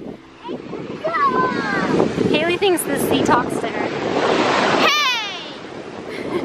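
A young girl squeals and shrieks excitedly close by.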